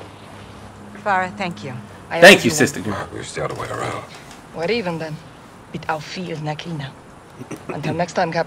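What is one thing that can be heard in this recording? A woman answers in a low, calm voice.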